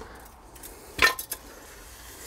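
A metal jack stand clanks on a hard floor.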